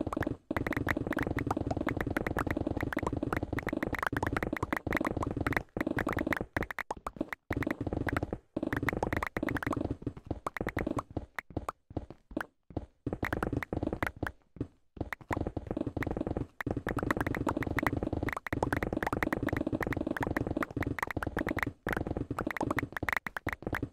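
Stone blocks crack and crumble in rapid bursts, over and over.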